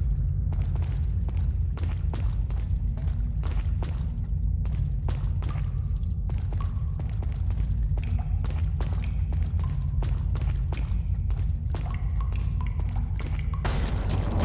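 Footsteps thud steadily on a hard stone floor.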